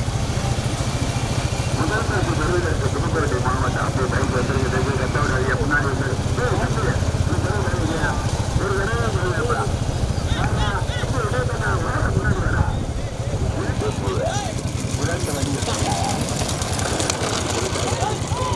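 A light cart's wheels roll on asphalt.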